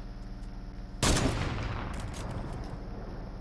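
A sniper rifle fires a single shot that echoes away.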